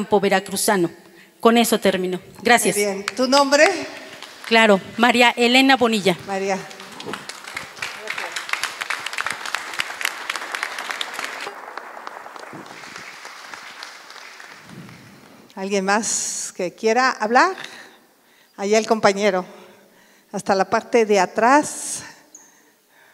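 A middle-aged woman speaks with animation through a microphone and loudspeakers.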